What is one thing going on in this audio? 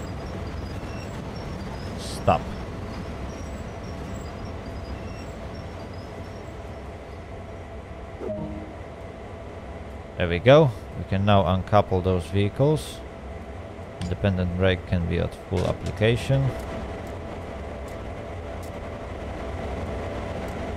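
A diesel locomotive engine idles with a steady low rumble.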